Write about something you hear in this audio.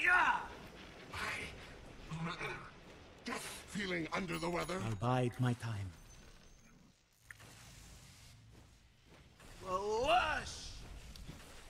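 Magic spells whoosh and crackle.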